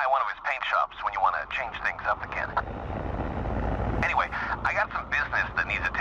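A spacecraft engine rumbles and grows louder.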